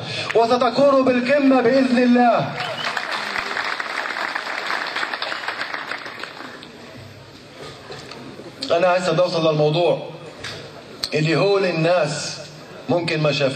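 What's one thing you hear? A man sings with feeling through a microphone and loudspeakers.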